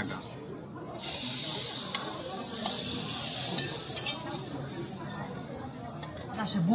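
Meat sizzles loudly on a hot grill.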